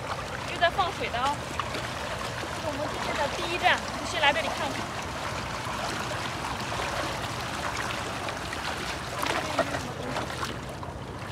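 Water gushes from a pipe and splashes into shallows.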